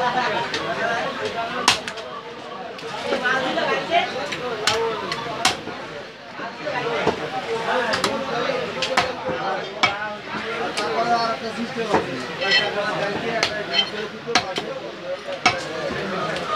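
A cleaver chops through meat onto a wooden block with sharp thuds.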